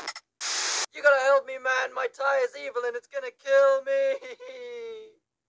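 A man speaks in a high, strained cartoon voice with animation.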